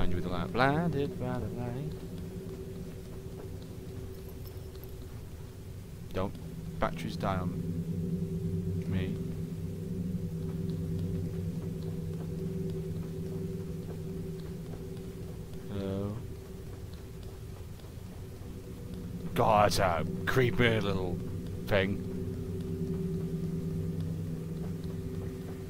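Small footsteps patter softly on a wooden floor.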